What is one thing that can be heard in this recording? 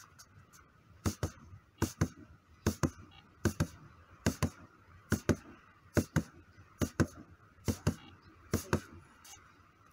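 Gloved punches thud rhythmically against a padded strike shield in pairs.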